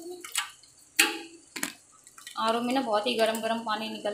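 A plastic bottle clatters against a metal sink.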